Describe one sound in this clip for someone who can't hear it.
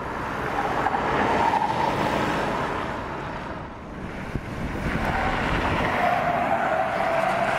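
A car engine hums as the car drives past.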